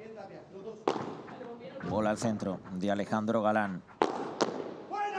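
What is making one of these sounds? Padel rackets strike a ball with sharp pops.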